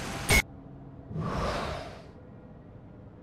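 A magical whoosh swells and fades away.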